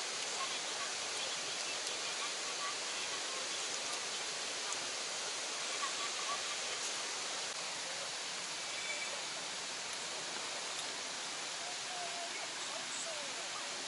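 Steady rain patters on a tent roof.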